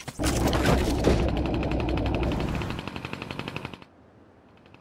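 A small propeller whirs loudly in rapid pulses.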